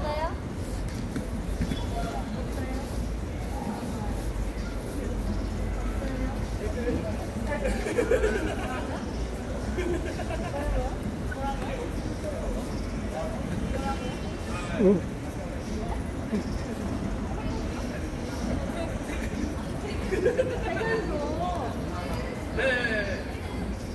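Backing music plays from a loudspeaker.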